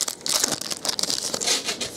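Cards slide and flick against each other.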